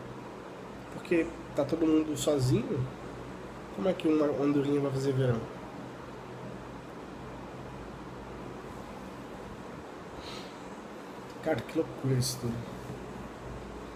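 A young man speaks casually, close to the microphone, in short bursts.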